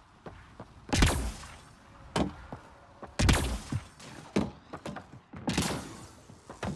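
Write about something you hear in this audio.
A gun fires sharp, loud shots.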